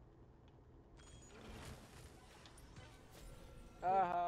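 Fantasy combat effects whoosh and crackle.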